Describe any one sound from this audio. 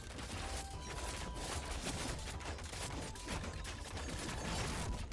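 Gunfire crackles rapidly in a battle.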